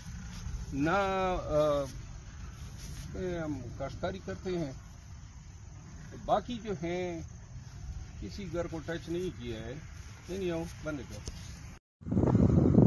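A man speaks calmly outdoors at night, close by.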